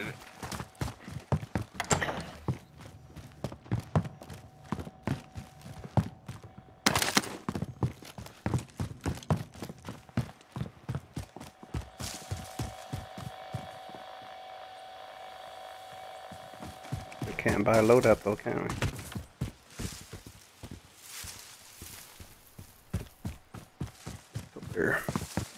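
Footsteps thud quickly on wooden floors and ground.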